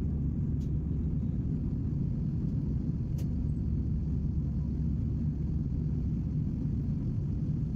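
A jet engine roars steadily in a low, constant rumble from inside an airliner cabin.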